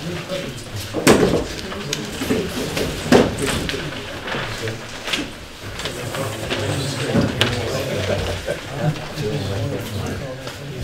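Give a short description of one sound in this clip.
Large sheets of paper rustle and crinkle as they are handled.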